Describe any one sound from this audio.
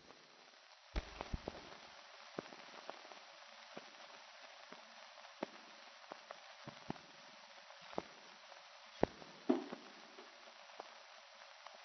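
Cups and dishes clink on a table.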